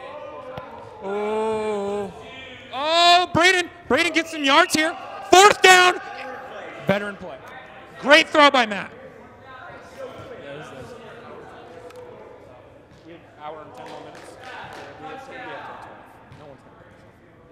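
Young men shout loudly to each other in a large echoing indoor hall.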